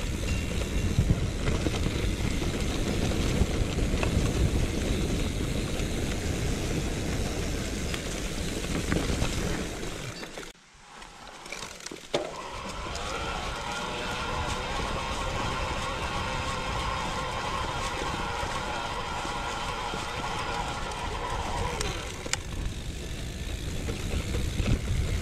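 A bicycle's gears and chain click and whir.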